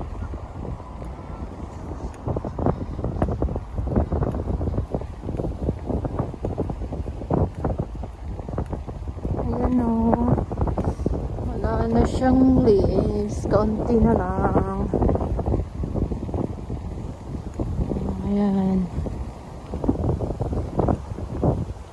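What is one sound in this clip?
Wind buffets and rumbles outdoors.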